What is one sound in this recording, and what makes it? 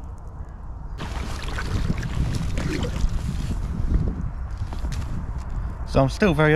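A kayak paddle splashes through water.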